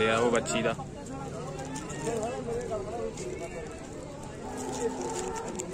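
Men talk nearby outdoors in a crowd.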